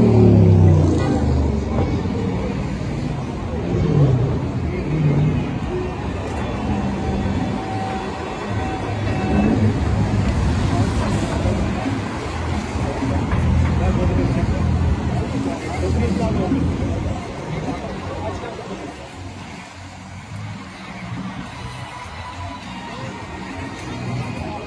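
A busy street crowd murmurs in the background outdoors.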